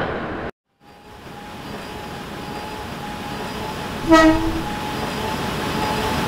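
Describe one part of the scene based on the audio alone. A train rumbles closer along the tracks.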